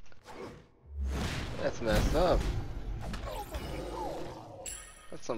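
Heavy blows and bursts crash during a fight.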